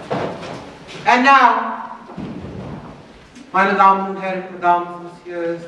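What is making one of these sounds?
A woman sings loudly through loudspeakers in a large hall.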